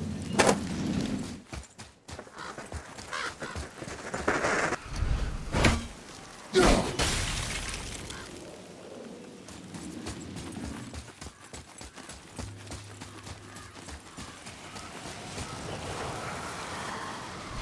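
Heavy footsteps thud on dirt and stone as a man runs.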